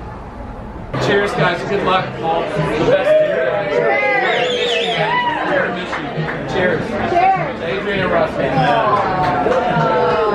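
A crowd of men and women chatter and laugh loudly in a busy room.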